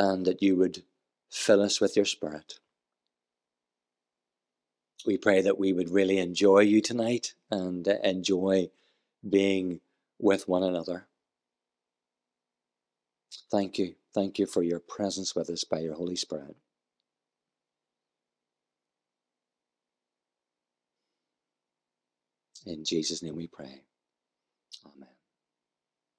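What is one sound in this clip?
A middle-aged man speaks calmly into a microphone in an echoing hall, pausing between phrases.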